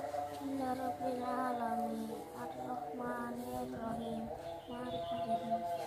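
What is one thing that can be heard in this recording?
A young boy recites aloud in a sing-song chant, close by.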